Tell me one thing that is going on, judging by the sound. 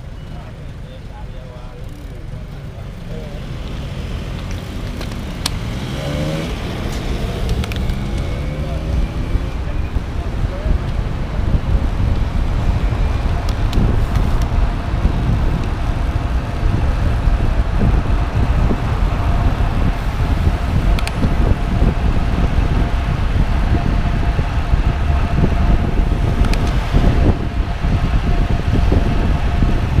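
Wind rumbles against the microphone while riding outdoors, growing louder as speed builds.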